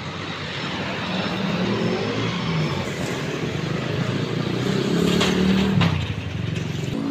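A tricycle's engine putters nearby.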